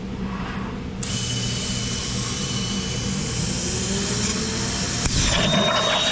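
A plasma cutter hisses and roars loudly as it cuts metal.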